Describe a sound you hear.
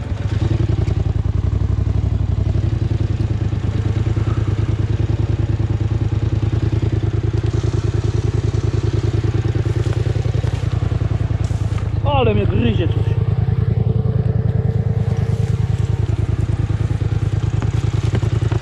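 An all-terrain vehicle's engine idles with a steady low chugging.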